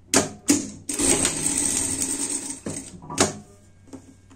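A sewing machine whirs briefly as it stitches.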